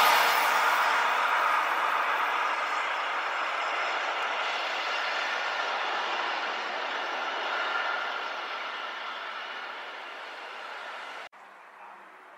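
A train rumbles and squeals along the tracks, slowly fading into the distance.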